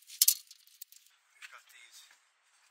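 Metal screws jingle in a hand.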